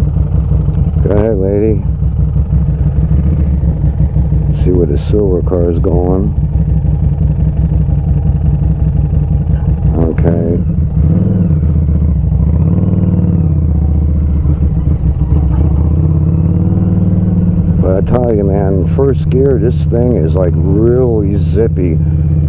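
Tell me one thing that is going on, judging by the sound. A motorcycle engine rumbles steadily at low speed close by.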